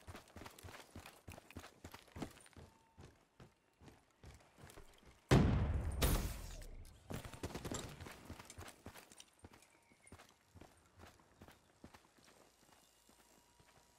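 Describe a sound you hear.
Footsteps thud quickly and evenly on the ground.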